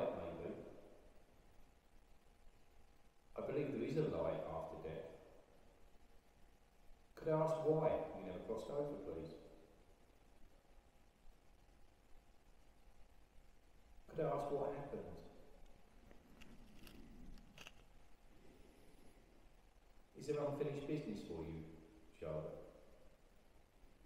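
An elderly man speaks calmly in short bursts with long pauses.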